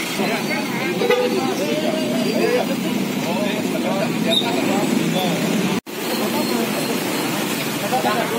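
Motorbikes idle and pass on a busy street.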